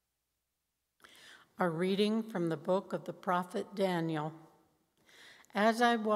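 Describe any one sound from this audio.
A middle-aged woman reads out through a microphone.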